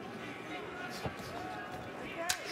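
A boxing glove thuds against a body.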